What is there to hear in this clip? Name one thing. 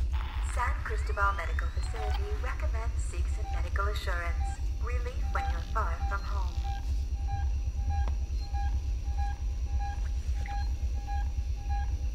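A motion tracker beeps steadily.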